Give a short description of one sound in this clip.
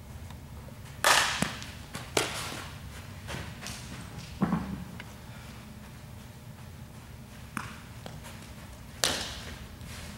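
A softball smacks sharply, echoing through a large indoor hall.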